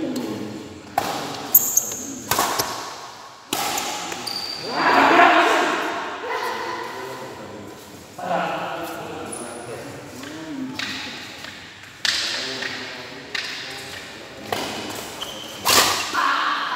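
Shuttlecocks pop sharply off badminton rackets.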